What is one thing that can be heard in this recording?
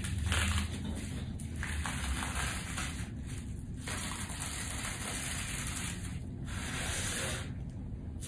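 A sheet of paper rustles and slides on a table.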